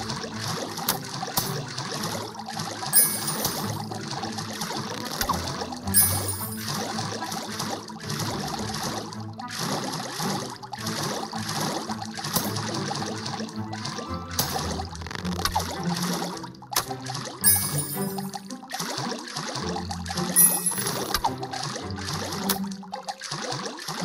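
Magic bolts whoosh and burst.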